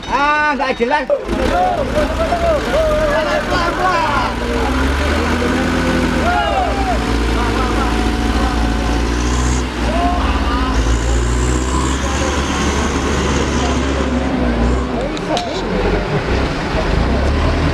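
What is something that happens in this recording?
A heavy truck engine labours and roars steadily.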